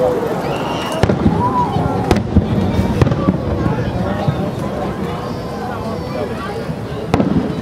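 Fireworks burst with loud booms that echo.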